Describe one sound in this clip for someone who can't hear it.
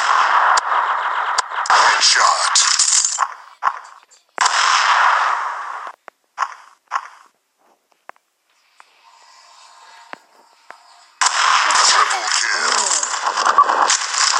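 A rifle fires single sharp shots.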